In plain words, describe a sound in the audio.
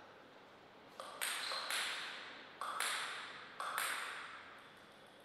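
A table tennis ball bounces a few times on a table before a serve.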